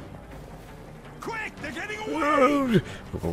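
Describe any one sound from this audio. A man shouts urgently.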